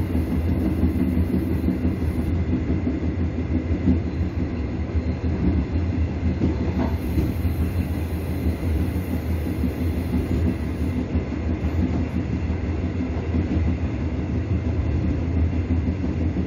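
A train rumbles along rails.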